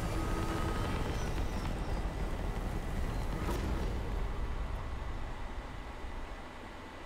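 A spaceship's engines rumble low and steady, then fade.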